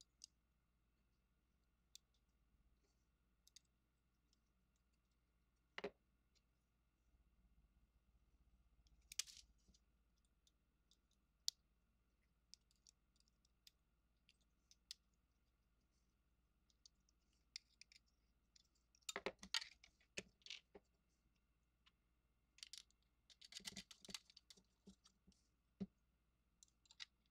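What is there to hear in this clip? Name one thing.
Small plastic and metal parts click and clack as hands fit them together.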